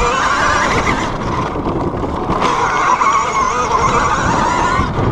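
A dirt bike engine whines loudly up close, rising and falling in pitch.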